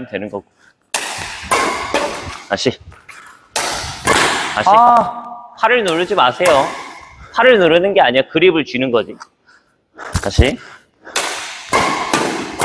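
A badminton racket sharply strikes a shuttlecock.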